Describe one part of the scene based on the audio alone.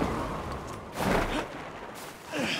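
A parachutist lands with a thud.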